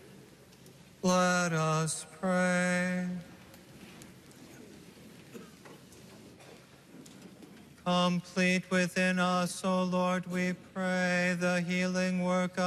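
A middle-aged man chants slowly through a microphone in a large echoing hall.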